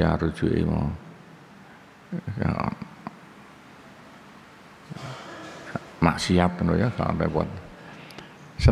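An elderly man reads aloud calmly into a close microphone, pausing between phrases.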